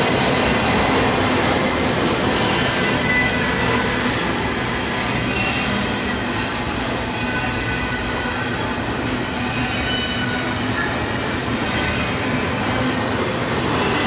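Metal squeals and screeches faintly as the train's wheels grind on the rails.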